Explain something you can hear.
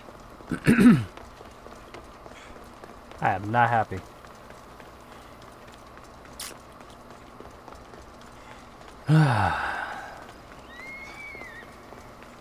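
Footsteps run over stone and down steps.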